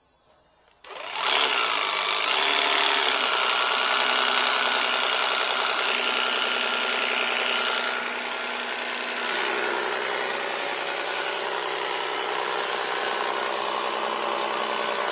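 A power tool motor starts and runs with a loud, steady whine.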